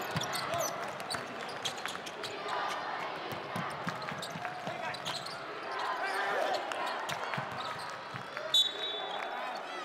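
Basketball sneakers squeak on a hardwood court.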